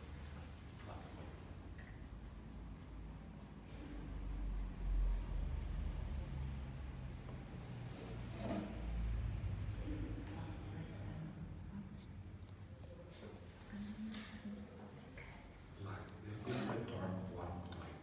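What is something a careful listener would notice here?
A paintbrush strokes paint onto a wooden panel.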